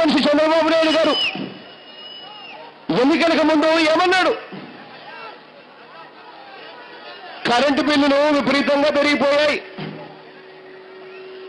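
A large crowd murmurs and cheers in the distance.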